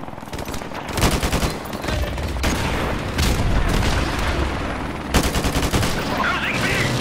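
A rifle fires rapid, loud bursts.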